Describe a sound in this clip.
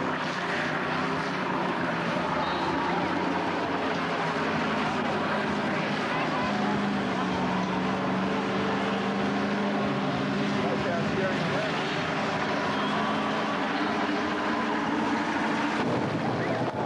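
A car engine roars loudly and steadily.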